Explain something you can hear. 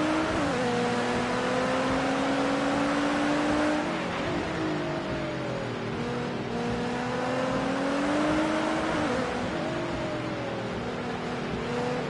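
A racing car engine roars loudly, its pitch rising and falling through gear changes.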